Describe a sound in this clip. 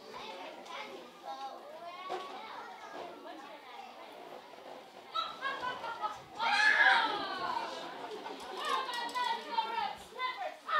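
Young girls speak lines clearly in a large echoing hall.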